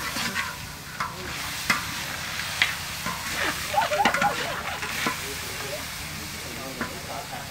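A metal spatula scrapes and clatters against a wok.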